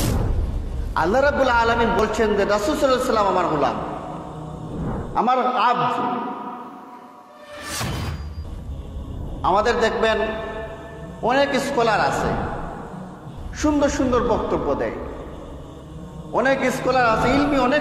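A man speaks steadily into a microphone, in a slow, chanting manner.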